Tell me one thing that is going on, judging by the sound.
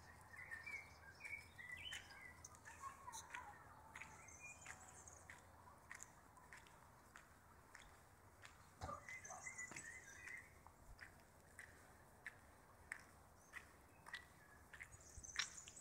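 Footsteps crunch on a gravelly dirt path.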